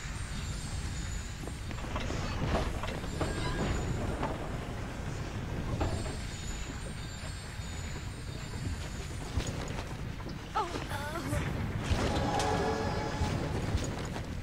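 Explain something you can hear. Jets of fire roar up in bursts.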